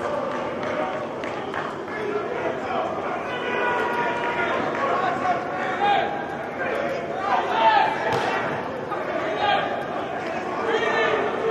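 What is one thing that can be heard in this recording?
Young men talk and laugh together nearby in a large echoing indoor hall.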